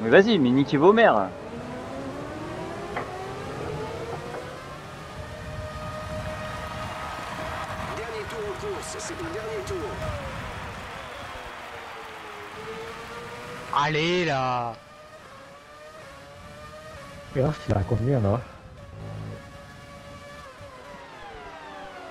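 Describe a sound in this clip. A racing car engine whines loudly, rising in pitch through the gears and dropping sharply when braking.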